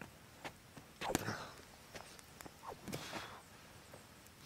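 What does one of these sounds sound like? A sword swishes through the air as a young man swings it.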